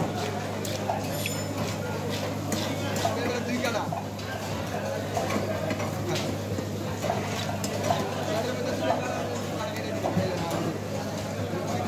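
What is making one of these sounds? A crowd of men chatters in the background.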